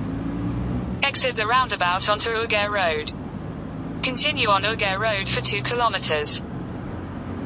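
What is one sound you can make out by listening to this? An ambulance siren yelps rapidly nearby in two bursts.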